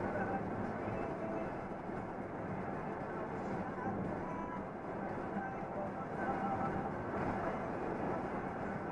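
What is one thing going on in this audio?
Tyres roll on the road with a steady rumbling hiss.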